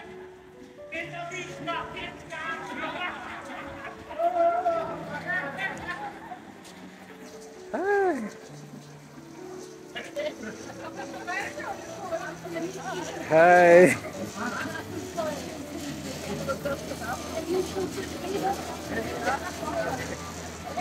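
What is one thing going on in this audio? Several adults chat and laugh together outdoors.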